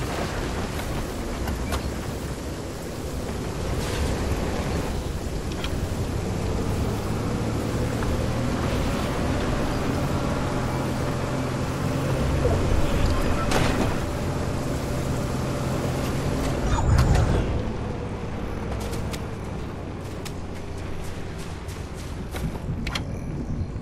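A video game golf cart's engine hums as it drives.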